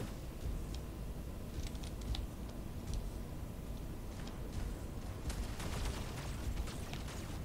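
A man speaks calmly close to a microphone.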